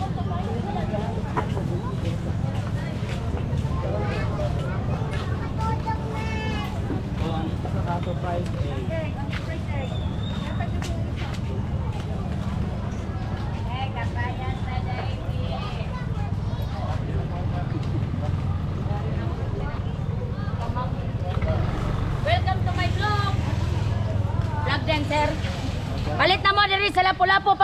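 Voices of shoppers and vendors chatter in a busy outdoor market.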